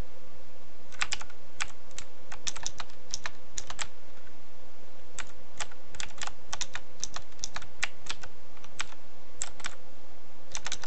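Quick light footsteps tap across a hard floor.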